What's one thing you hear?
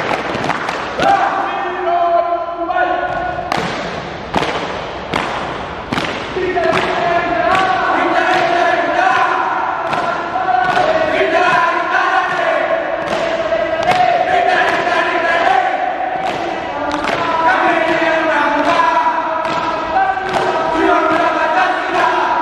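A group of young men chant loudly in unison in an echoing hall.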